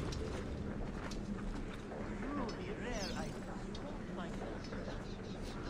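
Footsteps tread across a tiled roof.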